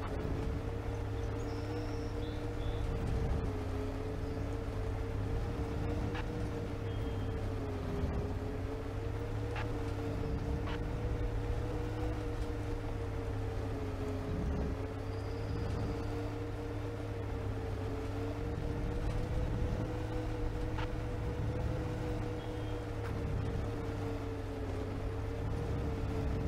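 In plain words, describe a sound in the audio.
A bus engine drones steadily at a low, even pitch.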